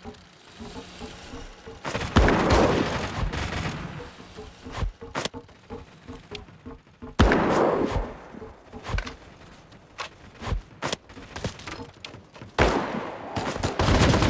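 Boots thud on wooden floorboards.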